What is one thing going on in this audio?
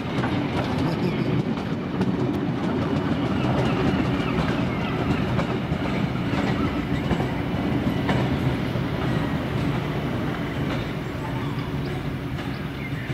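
A train rolls away on steel rails.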